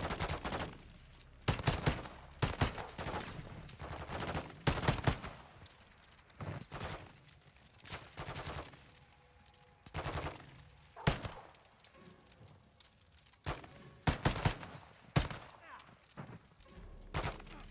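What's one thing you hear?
Gunshots crack nearby in short bursts.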